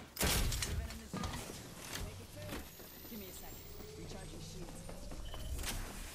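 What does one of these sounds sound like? A shield battery charges with a rising electric hum.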